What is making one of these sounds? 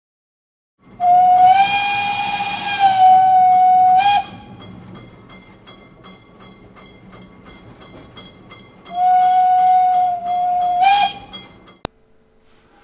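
A small steam engine chuffs in a quick, steady rhythm.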